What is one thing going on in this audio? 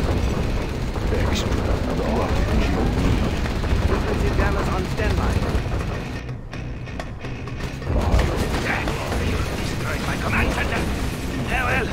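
Tank guns fire in sharp bursts.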